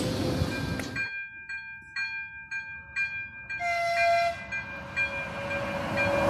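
An electric locomotive approaches from a distance.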